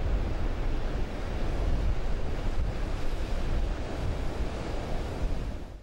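Waves crash and surge into white water.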